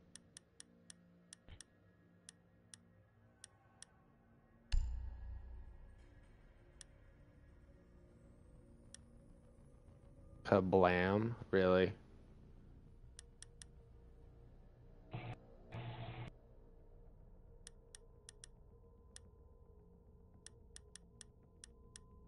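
Soft menu clicks tick again and again in quick runs.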